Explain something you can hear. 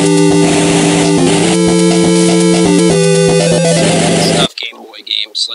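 Handheld game console chiptune music plays with fighting game sound effects.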